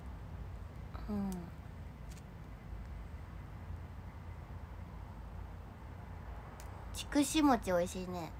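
A young woman speaks briefly and casually, close by.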